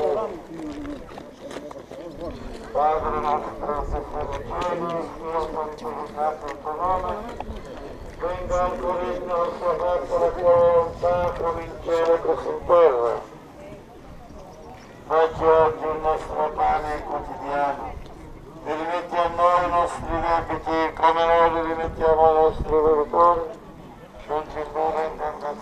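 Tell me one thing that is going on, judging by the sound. A crowd of people sings together outdoors.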